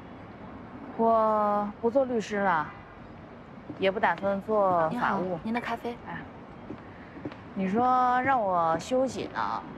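A woman speaks calmly across a table.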